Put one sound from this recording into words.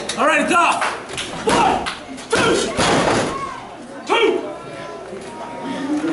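A wrestler's body thuds against the mat.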